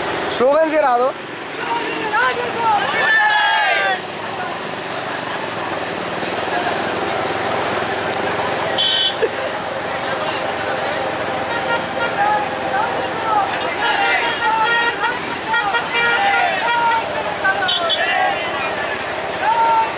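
Young men shout and chant loudly outdoors.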